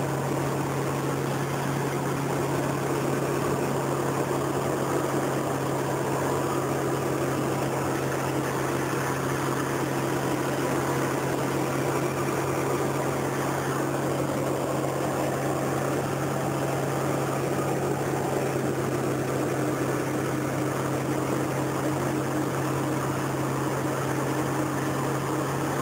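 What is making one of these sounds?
Wind rushes loudly past the plane.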